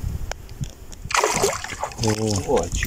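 A fish splashes and thrashes in the water close by.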